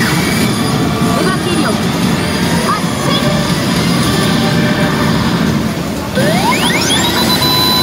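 A gaming machine plays loud, busy electronic music.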